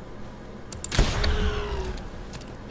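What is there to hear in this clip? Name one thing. A creature shrieks during a fight.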